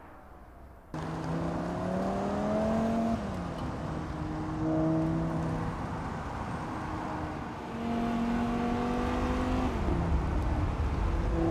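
A car engine revs hard and climbs through the gears close by.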